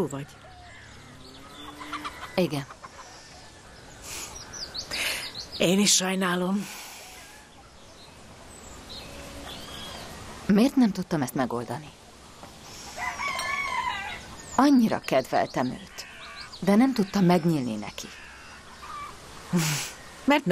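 A younger woman answers softly and close by.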